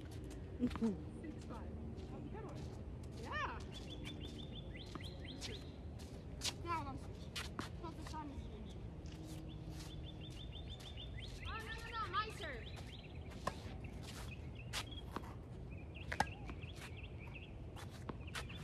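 Tennis rackets strike a ball in a steady rally outdoors.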